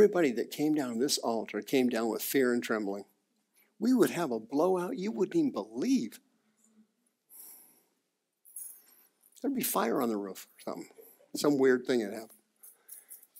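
A middle-aged man speaks calmly through a microphone, in pauses.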